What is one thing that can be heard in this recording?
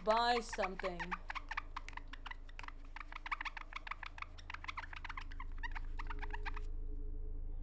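A prize wheel clicks rapidly as it spins and slows down.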